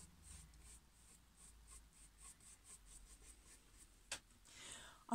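A paintbrush dabs and scratches softly against a canvas in quick strokes.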